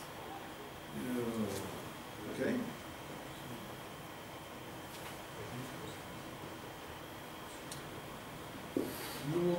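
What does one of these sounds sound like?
A man speaks briefly in a small room, heard from a distance.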